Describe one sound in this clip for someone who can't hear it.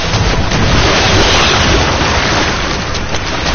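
Water rushes and splashes loudly.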